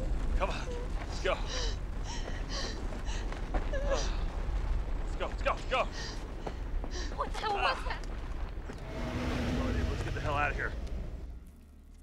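A young woman gasps and cries out nearby.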